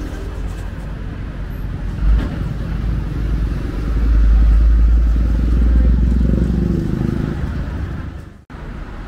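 A delivery truck rumbles past close by.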